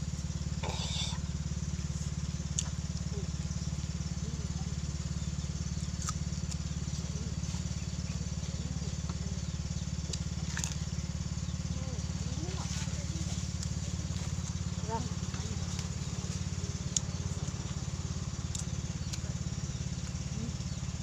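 Fingers rustle and pick at food on a leaf.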